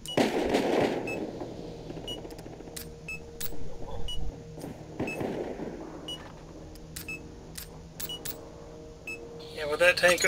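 A countdown timer ticks once each second.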